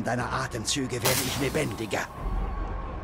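A jet of gas hisses.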